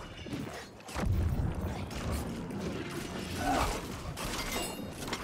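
Magic spells and blows clash in a fight.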